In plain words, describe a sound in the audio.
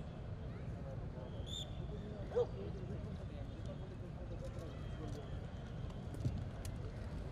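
A crowd murmurs faintly outdoors in the distance.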